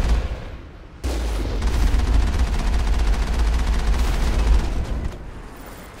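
An explosion booms with a deep, lingering rumble.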